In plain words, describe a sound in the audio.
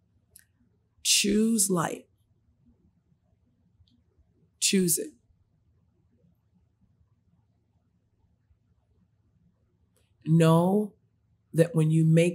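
A woman speaks with animation into a close microphone, in short bursts with pauses.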